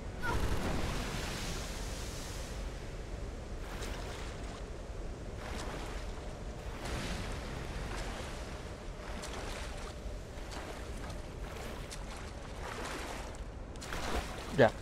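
Water splashes and swirls as someone swims.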